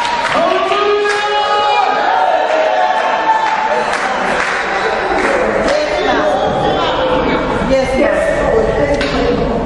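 A man preaches with fervour into a microphone, heard through loudspeakers in an echoing hall.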